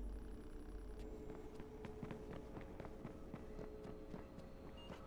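Footsteps run quickly across a metal floor and up metal stairs.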